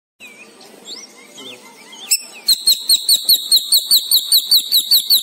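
A small bird chirps in quick, even bursts close by.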